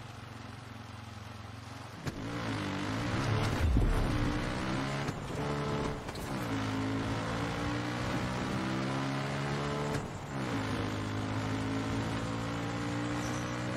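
A quad bike engine idles, then revs up and down as it accelerates through the gears.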